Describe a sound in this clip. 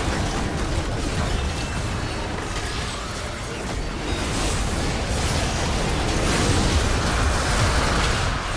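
Video game spell effects whoosh, crackle and boom in a hectic battle.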